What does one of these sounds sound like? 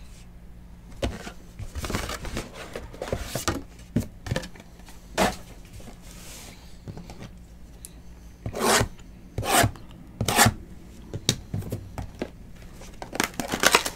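Cardboard boxes rustle and tap as hands handle them.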